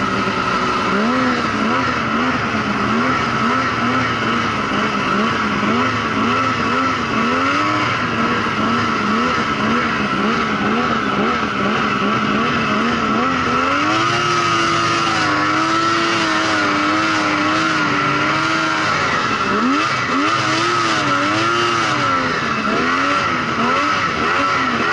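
A snowmobile engine whines loudly close by, its pitch rising and falling as it revs.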